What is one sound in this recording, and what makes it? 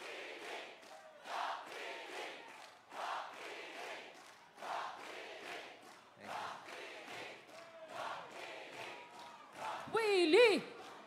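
A large crowd cheers and chants in rhythm outdoors.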